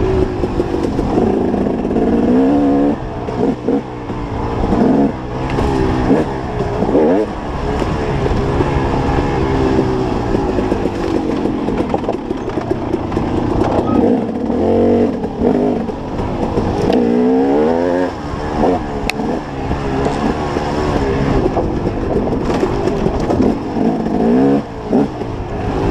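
Tyres crunch over dry dirt and loose stones.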